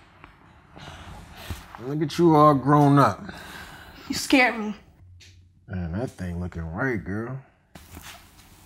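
A man speaks in a drowsy, drawling voice.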